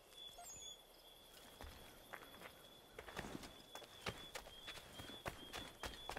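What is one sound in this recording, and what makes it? Footsteps scuff on stone and gravel.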